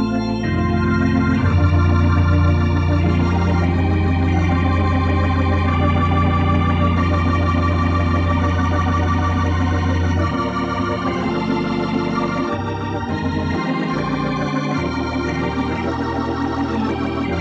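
An electric organ plays a lively tune with chords and a deep bass line.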